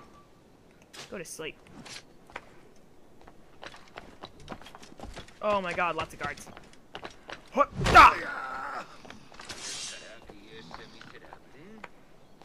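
Footsteps clatter across roof tiles.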